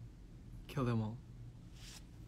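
A young man speaks briefly and softly into a close microphone, his voice falling in pitch.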